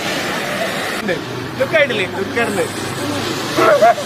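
Young men laugh and shout nearby.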